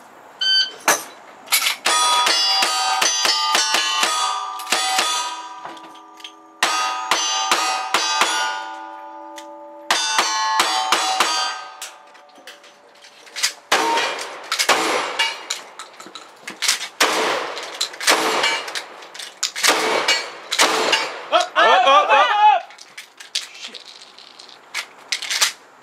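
Gunshots crack one after another, loud and close.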